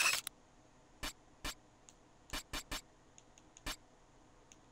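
Short electronic clicks sound as menu items are selected.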